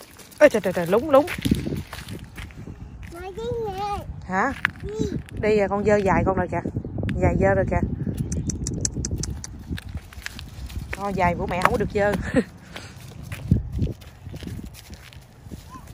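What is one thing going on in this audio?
Small footsteps crunch on gravel and dry leaves.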